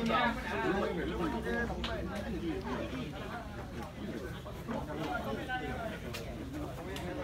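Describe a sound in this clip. A crowd of young men and women chatter and call out outdoors.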